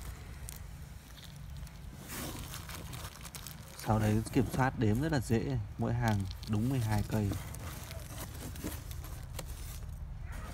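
Leaves rustle as a hand brushes through them.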